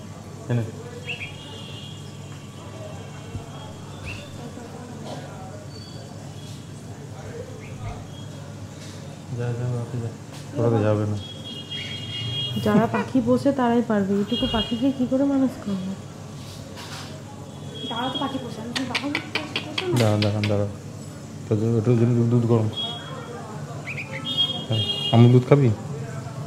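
A baby bird chirps in short high bursts.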